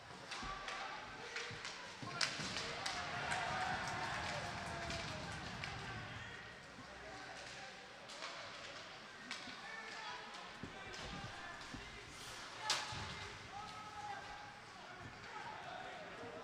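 A crowd of spectators murmurs and cheers in an echoing arena.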